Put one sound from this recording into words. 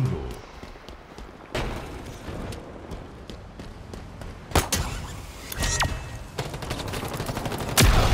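Guns fire in short bursts with sharp bangs.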